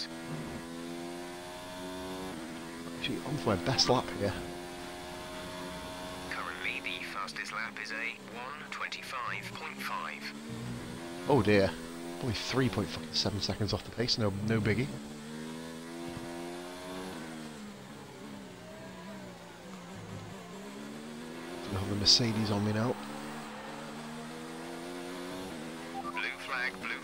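A racing car engine whines steadily, rising and falling in pitch as the car speeds up and brakes.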